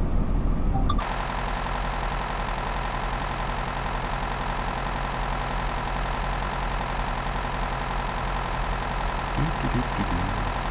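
A diesel train engine idles with a steady drone.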